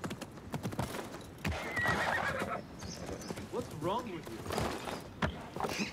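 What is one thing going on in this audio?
Hooves clop on hard ground.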